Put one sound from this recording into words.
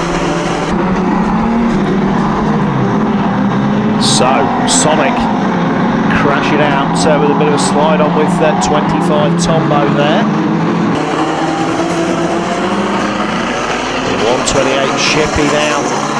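Several car engines roar and rev loudly around a dirt track.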